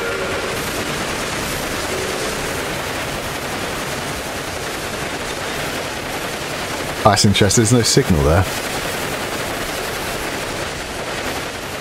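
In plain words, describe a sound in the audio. A steam locomotive chugs along a track.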